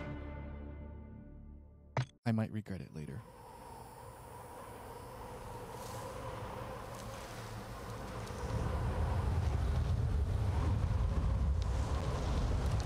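A young man speaks into a close microphone.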